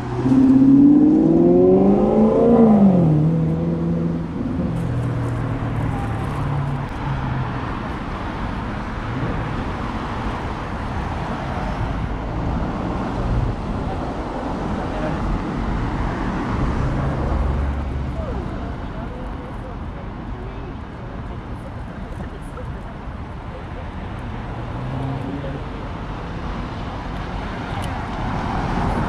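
Traffic rumbles past steadily on a street.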